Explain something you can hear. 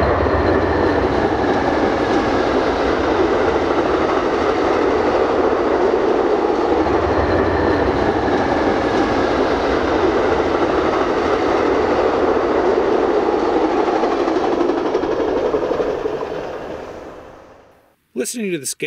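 A passenger train rumbles past on the tracks.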